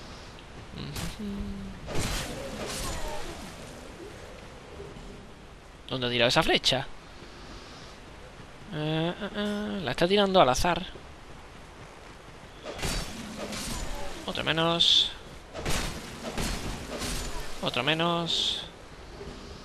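A sword swings and strikes with sharp thuds.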